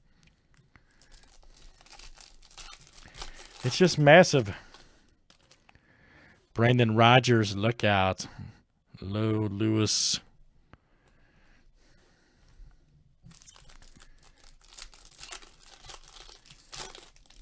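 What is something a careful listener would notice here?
A foil wrapper crinkles and rustles up close.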